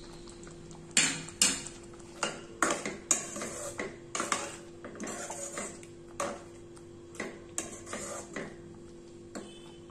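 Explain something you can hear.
A metal spoon clinks and scrapes against a steel pot while stirring a thick sauce.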